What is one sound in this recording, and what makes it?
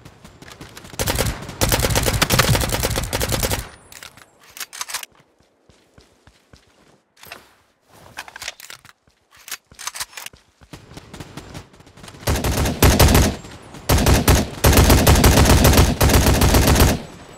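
An assault rifle fires in rapid automatic bursts.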